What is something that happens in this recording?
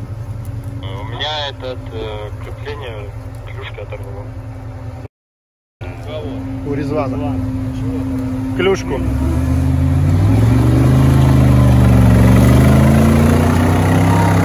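An off-road vehicle's engine rumbles at idle, then revs up hard.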